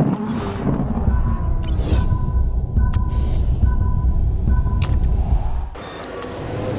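Racing car engines rumble and rev loudly.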